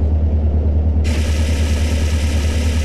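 A fire extinguisher sprays with a loud hiss.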